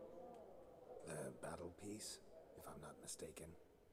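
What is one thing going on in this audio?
A man speaks in a low, gravelly voice, calmly and close to the microphone.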